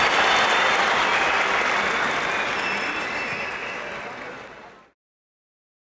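A large crowd cheers loudly in an echoing arena and slowly fades away.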